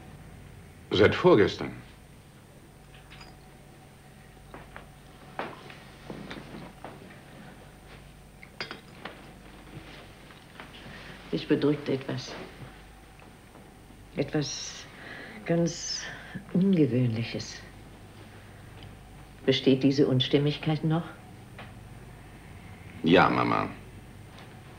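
An elderly woman speaks softly nearby.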